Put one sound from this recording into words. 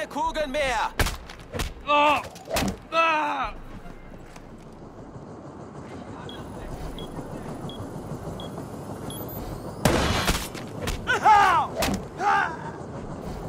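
Heavy blows land with dull thuds.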